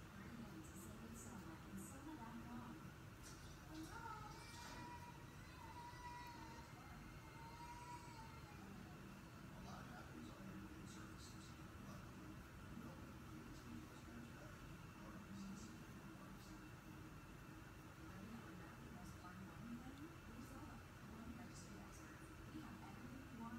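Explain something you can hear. A small brush brushes softly against skin.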